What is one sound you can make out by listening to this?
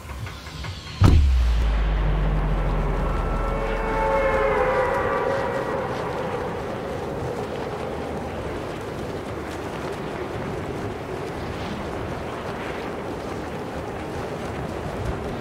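Wind rushes steadily past a game figure falling through the sky.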